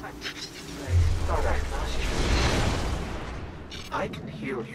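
A shimmering magical burst swells and fades.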